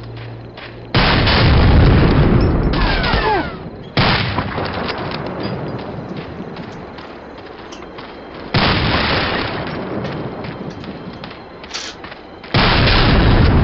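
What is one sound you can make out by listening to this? A rifle fires loud shots that boom and echo.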